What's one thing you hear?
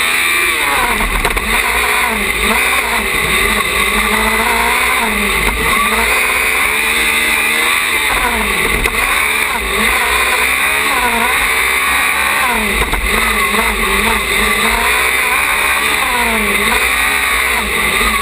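A small racing car's engine revs high, rising and falling as it accelerates and brakes through turns.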